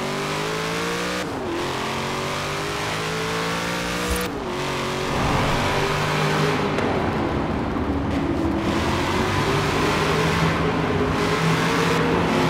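A sports car engine roars at high speed, its pitch climbing through each gear and dropping at each gear change.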